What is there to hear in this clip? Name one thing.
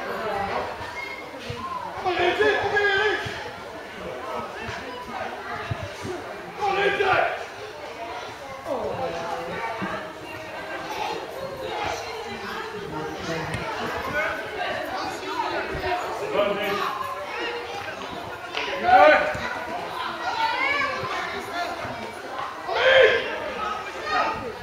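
Young boys shout to each other outdoors across an open field.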